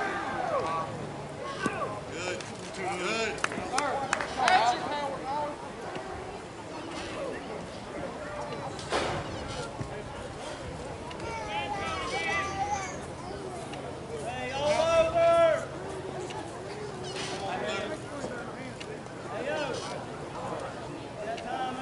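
Men call out and chatter across an open field outdoors.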